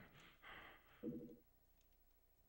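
A short chime sounds for an item being picked up.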